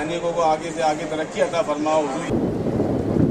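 A group of men chant a prayer together.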